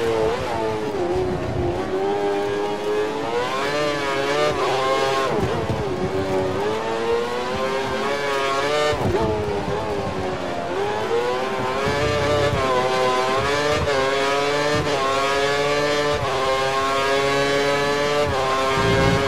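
A racing car engine whines loudly, its pitch rising through the gears and dropping when it slows.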